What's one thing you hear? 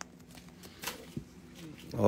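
Plastic wrapping crinkles briefly.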